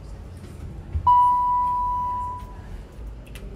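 An elevator chime rings once with a clear, steady tone that fades.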